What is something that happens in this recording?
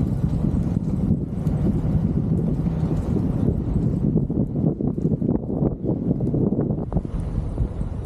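Wind buffets loudly, outdoors.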